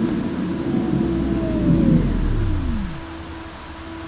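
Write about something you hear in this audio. A train motor whines and winds down.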